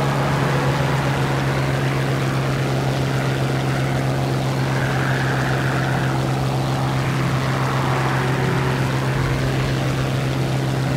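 A propeller plane's engine drones steadily and loudly.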